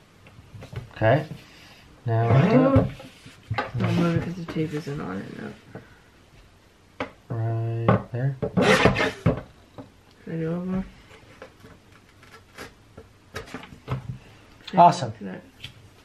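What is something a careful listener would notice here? A paper cutter blade slices through paper with a sharp crunch.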